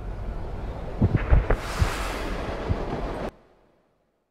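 A freight wagon rolls on rails with heavy thuds.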